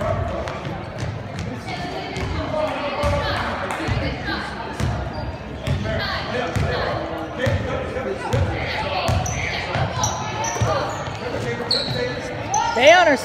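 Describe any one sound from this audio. Sneakers squeak on a hardwood floor in a large echoing gym.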